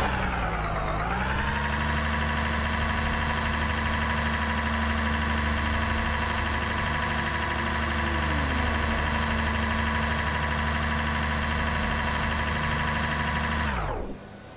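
A racing car engine idles steadily.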